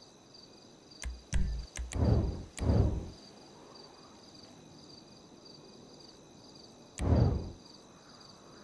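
Game menu sounds whoosh and click as the menu pages change.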